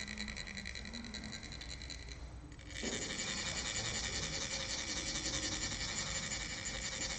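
Metal funnels rasp rapidly and steadily as they are scraped together.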